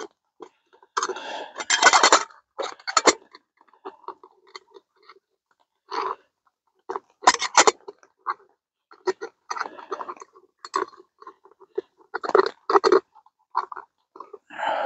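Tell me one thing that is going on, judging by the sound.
A spoon clinks and stirs in a metal cup.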